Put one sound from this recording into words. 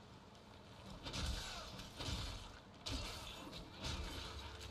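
Sword slashes and impacts crack in a game.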